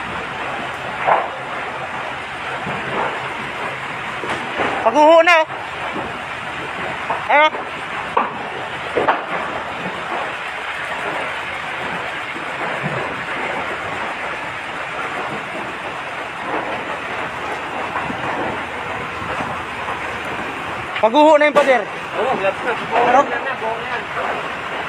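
A large truck engine rumbles steadily nearby.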